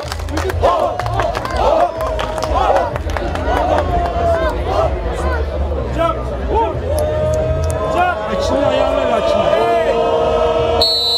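A crowd chatters and cheers loudly outdoors.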